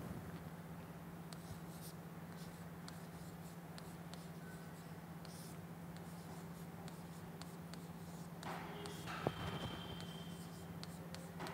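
A pen taps and scratches lightly against a hard writing surface.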